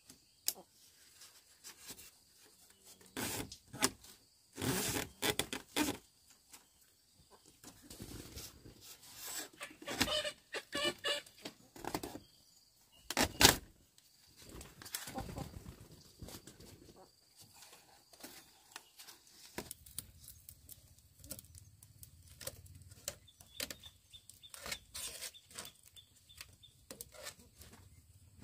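Dry bamboo strips rustle and clatter as they are woven into a wall.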